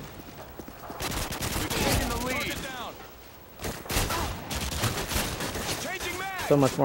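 Rapid gunfire bursts out in quick volleys.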